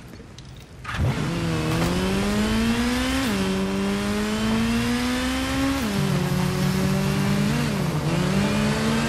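A motorcycle engine starts with a roar, then revs and hums steadily.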